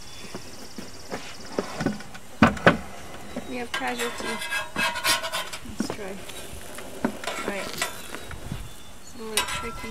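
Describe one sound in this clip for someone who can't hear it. A metal spatula scrapes and taps on a griddle.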